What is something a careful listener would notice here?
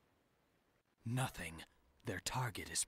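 A young man answers calmly and coolly.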